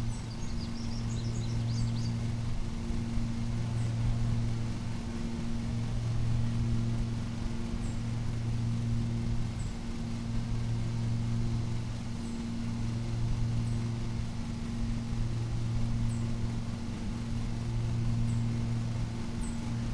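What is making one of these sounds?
A lawn mower engine drones steadily.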